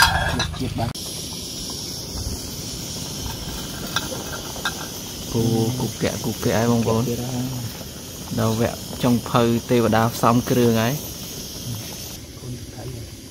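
Water bubbles and boils in a pot.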